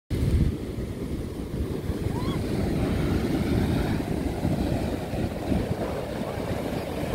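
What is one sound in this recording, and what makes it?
Waves wash onto a beach.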